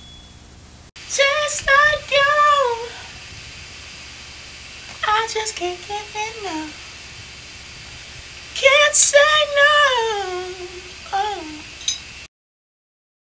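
A man sings out loudly and expressively nearby.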